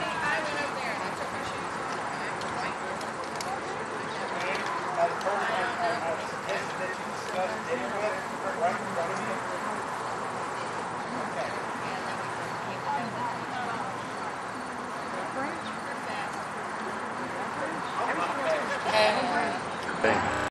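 Many birds chirp and twitter overhead.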